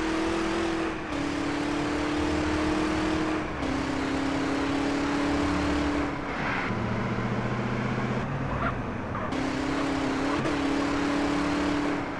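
A car engine hums steadily, dropping in pitch as the gears shift.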